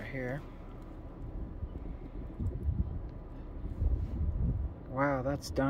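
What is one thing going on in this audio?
A charcoal fire crackles softly under a grill.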